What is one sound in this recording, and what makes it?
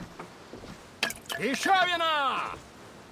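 An elderly man exclaims loudly and with animation.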